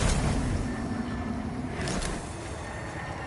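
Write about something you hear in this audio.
A sword whooshes through the air and strikes.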